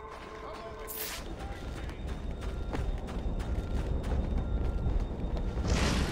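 Footsteps run on cobblestones.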